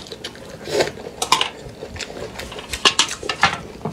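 Chopsticks tap on a metal tray.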